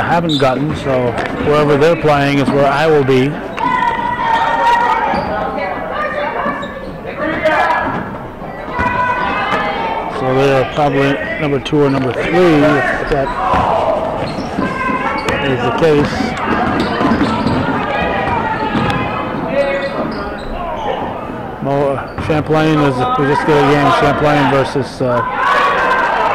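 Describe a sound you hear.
A man close by shouts and cheers loudly.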